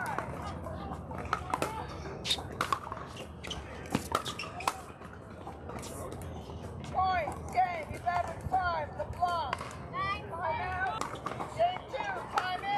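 Paddles strike a plastic ball with sharp pops outdoors.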